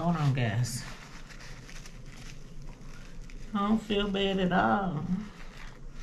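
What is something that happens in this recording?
Paper crinkles as a woman wipes her face with a napkin.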